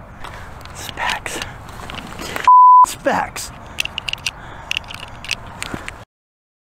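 A man talks excitedly close by.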